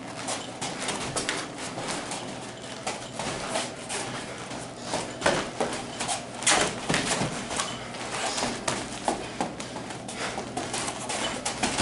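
Feet shuffle and thump on a padded mat.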